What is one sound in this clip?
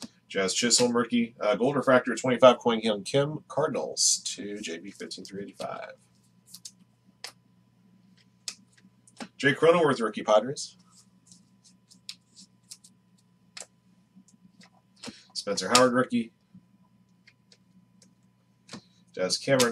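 Trading cards shuffle and slide softly between hands.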